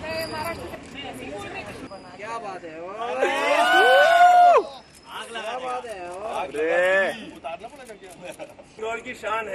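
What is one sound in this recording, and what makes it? Several young men talk and laugh cheerfully close by.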